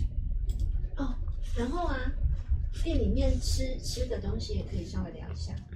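A young woman speaks close to a microphone.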